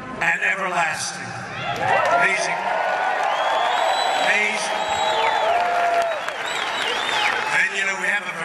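A man speaks forcefully into a microphone over loudspeakers.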